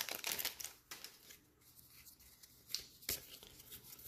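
Cards rustle and slide against each other.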